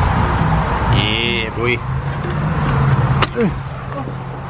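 A door handle clicks and a door opens.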